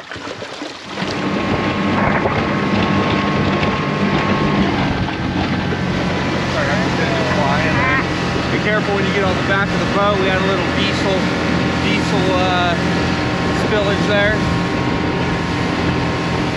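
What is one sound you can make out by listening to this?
An outboard motor drones steadily at speed.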